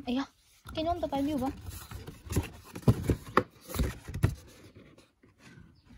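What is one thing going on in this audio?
A cardboard box rustles and knocks as it is handled.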